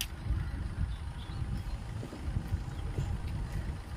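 A car gear lever clicks into place.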